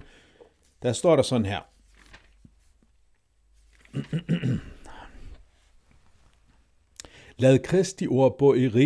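A man speaks calmly and close into a microphone, in short bursts with pauses.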